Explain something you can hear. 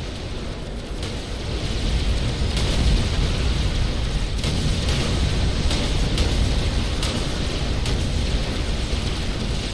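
Explosions boom and rumble in a loud battle.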